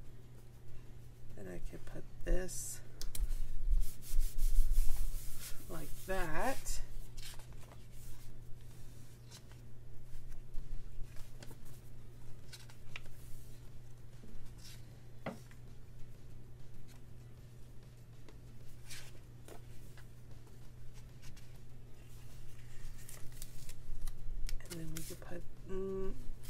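Paper rustles and crinkles as stickers are handled.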